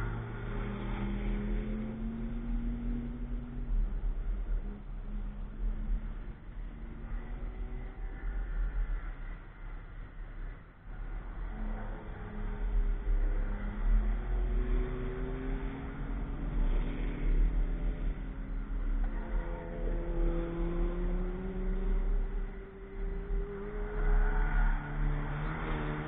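Car engines roar and rev up and down as cars race by in the distance.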